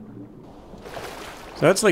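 Water splashes around a swimmer's arms.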